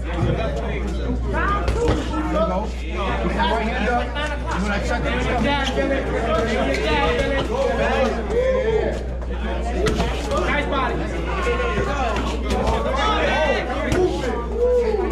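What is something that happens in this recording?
Several men talk and call out loudly in an echoing room.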